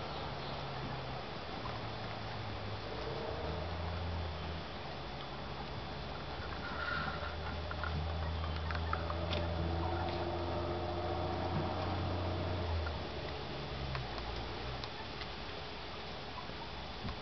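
Hens cluck softly and murmur close by.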